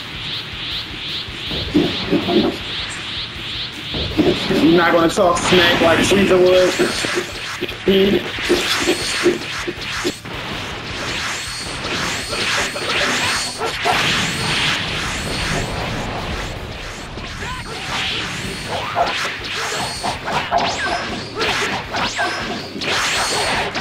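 Energy blasts crackle and explode in a game fight.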